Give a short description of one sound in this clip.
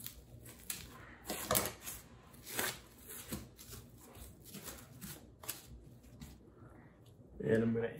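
Plastic wrap crinkles as hands smooth it.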